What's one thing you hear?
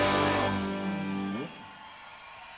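A band plays music loudly through speakers.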